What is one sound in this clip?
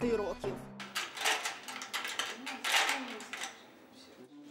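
A metal door latch scrapes and clanks as a hand works a handle.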